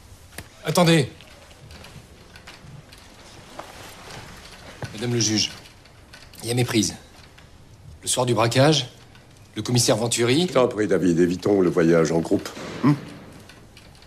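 A man speaks calmly in short, separate phrases, close by.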